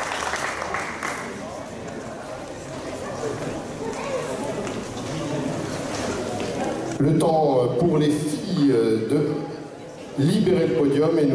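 A crowd of adults chatters in a large echoing hall.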